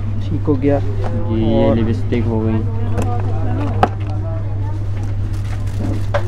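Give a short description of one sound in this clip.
Small plastic containers knock lightly as a hand picks through them.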